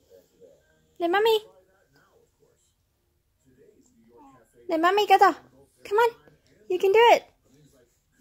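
A toddler squeals in a high voice.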